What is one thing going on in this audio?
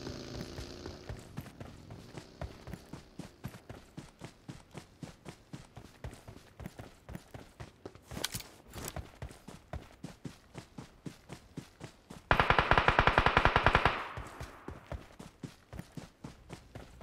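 Footsteps run quickly and steadily over grass and rock.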